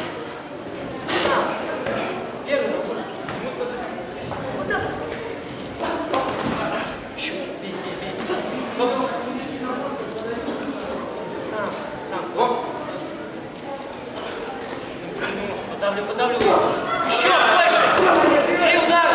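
Boxing gloves thud against bodies.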